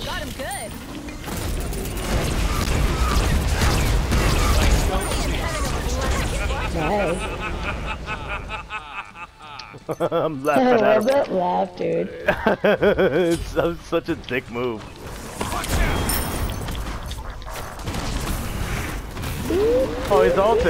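Magic spells whoosh and crackle in bursts.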